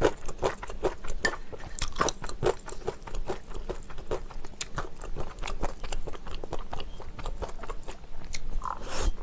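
Chopsticks click and scrape against a metal pan.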